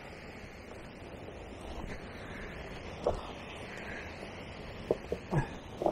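Footsteps crunch and clatter over loose stones.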